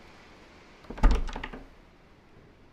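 A locked door handle rattles.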